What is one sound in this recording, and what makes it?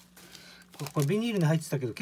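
A plastic bag crinkles as hands pull it open.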